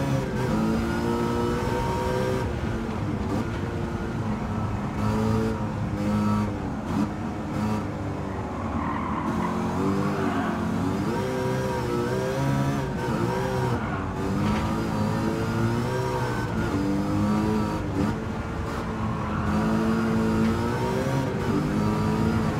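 A car engine roars and revs up and down through gear changes.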